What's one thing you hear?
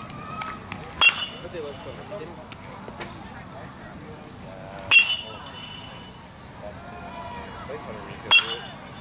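A metal bat strikes a ball with a sharp, ringing ping, several times.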